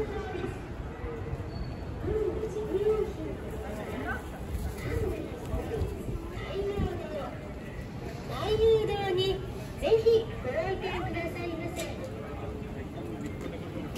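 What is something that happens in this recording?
Voices of passers-by chatter nearby on a busy street.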